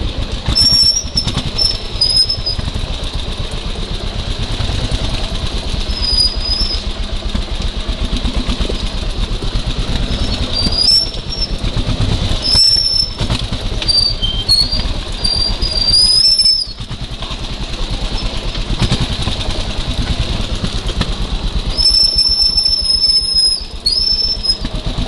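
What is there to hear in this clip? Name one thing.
A dirt bike engine putters and revs close by.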